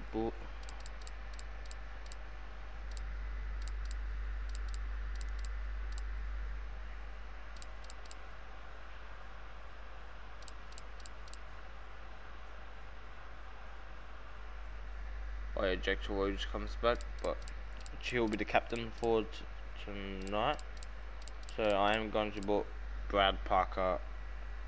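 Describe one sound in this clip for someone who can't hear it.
Soft menu ticks sound as a selection moves through a list.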